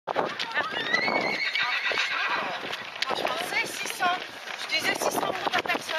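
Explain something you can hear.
Young men and women talk and call out while running nearby.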